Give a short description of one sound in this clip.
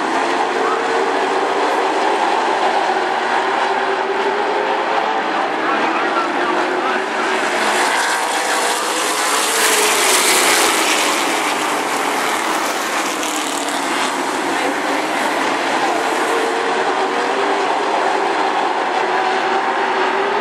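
Race car engines roar loudly as a pack of cars speeds past.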